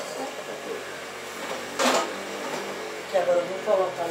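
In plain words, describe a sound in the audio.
A metal pot lid clatters.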